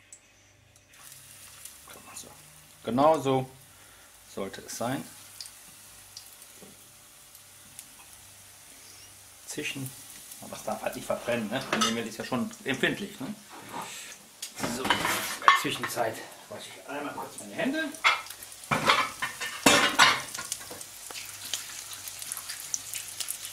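Breaded cutlets sizzle in hot oil in a frying pan.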